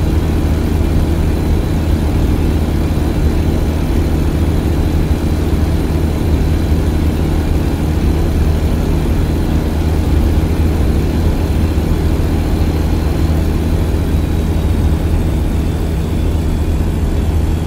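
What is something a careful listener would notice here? Tyres roll with a steady road noise.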